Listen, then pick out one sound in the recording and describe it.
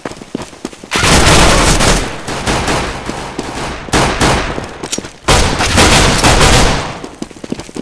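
Gunshots fire in loud rapid bursts.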